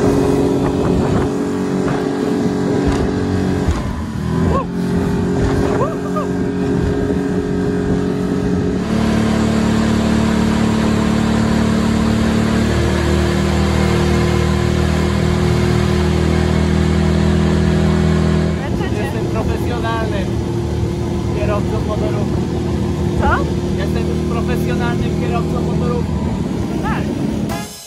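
A boat engine roars steadily at speed.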